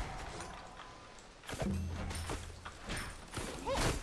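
Weapons clash and magic effects burst in a fight.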